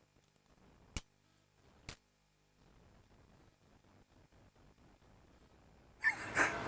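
Metal spanners clink together.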